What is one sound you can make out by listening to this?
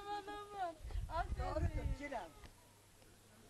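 Young girls sing together nearby.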